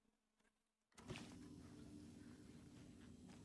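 Footsteps fall softly on a hard floor.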